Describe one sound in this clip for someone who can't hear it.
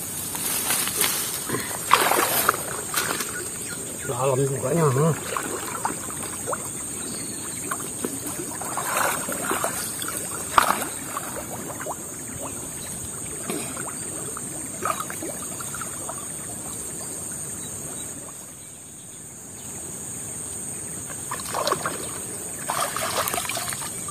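Water splashes and sloshes as a man wades and pulls a net.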